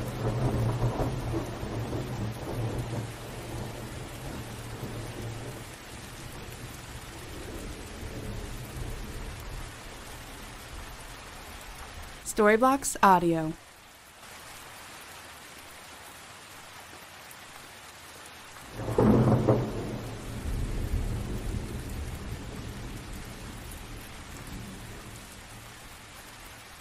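Thunder rumbles and rolls in deep waves.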